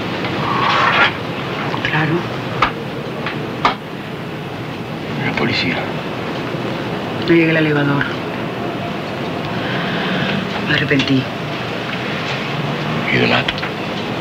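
A woman speaks tensely close by.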